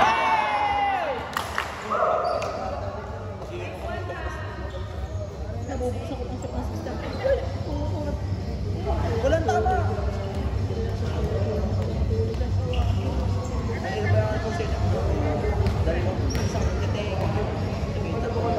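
Young men chat and call out to each other.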